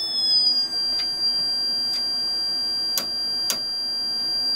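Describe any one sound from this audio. A knob clicks as it is turned.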